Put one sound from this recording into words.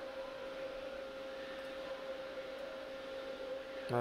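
A button clicks as it is pressed.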